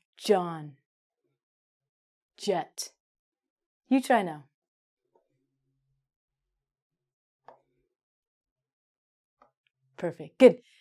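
A young woman pronounces single words clearly and slowly into a nearby microphone, with pauses between them.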